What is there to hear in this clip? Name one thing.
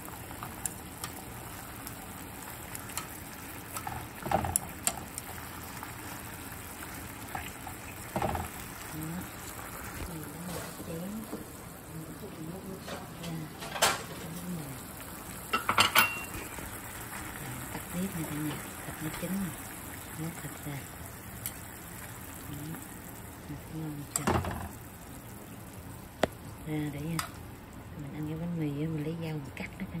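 Meat sizzles softly in a hot pan.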